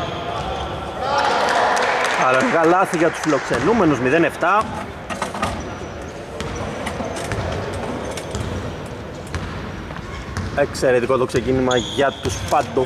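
Young men shout and call out loudly across an echoing hall.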